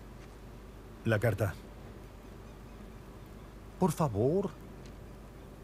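A second man with a deeper voice answers briefly.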